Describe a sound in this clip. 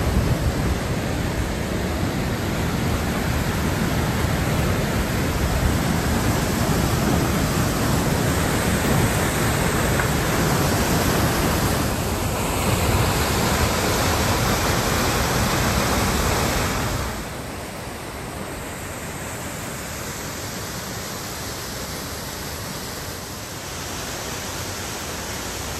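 A waterfall roars close by, then grows softer and more distant.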